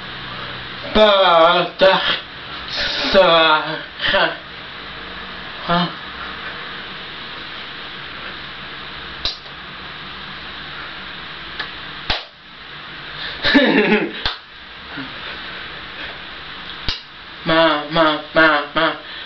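A young man sings loudly close by, in bursts.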